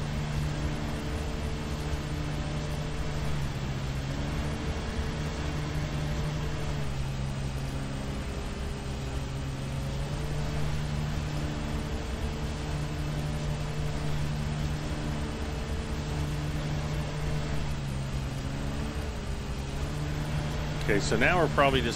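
A lawn mower engine drones steadily, its pitch shifting now and then.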